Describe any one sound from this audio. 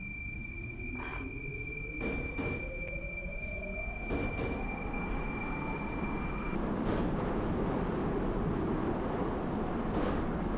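Metro train wheels clack over rail joints.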